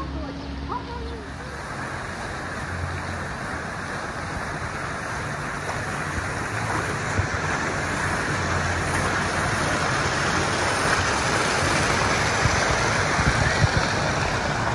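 Water rushes steadily down a slide and splashes into a pool, growing louder up close.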